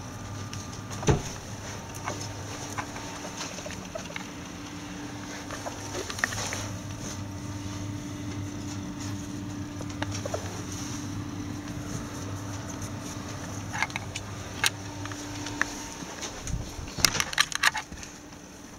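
A small animal's claws patter and scratch on a hard floor close by.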